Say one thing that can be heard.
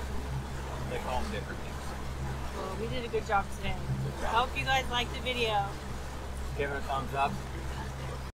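A man and a woman talk casually close by.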